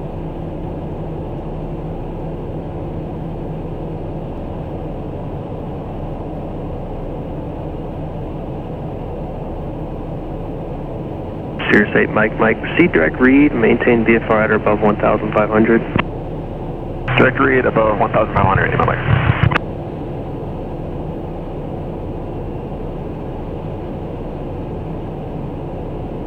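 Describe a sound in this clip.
A small plane's engine drones steadily throughout.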